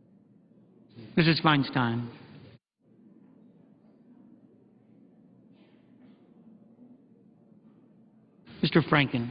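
A man calls out briefly through a microphone in a large echoing hall.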